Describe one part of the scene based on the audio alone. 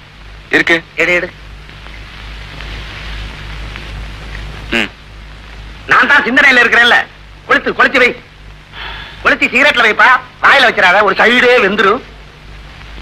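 Two men talk calmly nearby, trading short lines.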